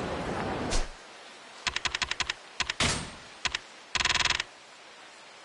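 Short electronic menu blips click in quick succession.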